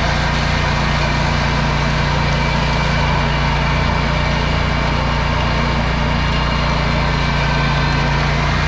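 A mower engine drones loudly and steadily close by.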